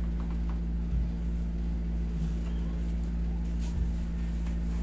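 A neck cracks with a short dull pop.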